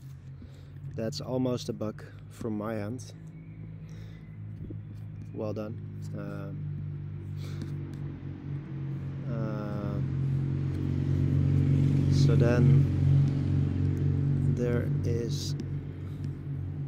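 A young man talks calmly and close to a microphone.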